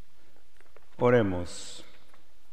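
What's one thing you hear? A man sings a short phrase through a microphone in a reverberant hall.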